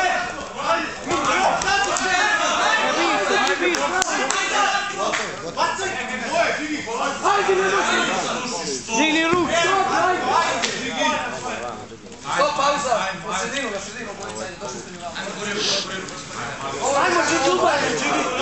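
A man shouts instructions loudly nearby.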